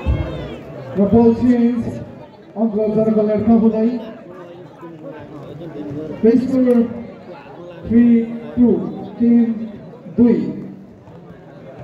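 Men shout loudly on the court.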